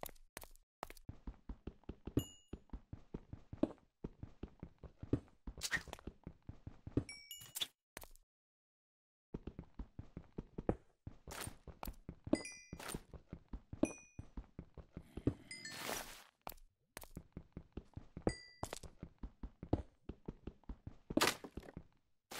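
Stone blocks crack and break apart.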